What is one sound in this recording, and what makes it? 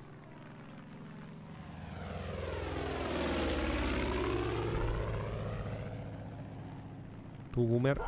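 A propeller plane drones overhead, growing louder and then fading away.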